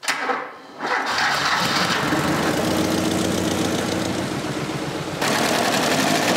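A car engine roars into life and runs loudly.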